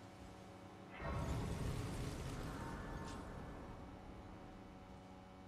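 A shimmering magical swell rises and slowly fades.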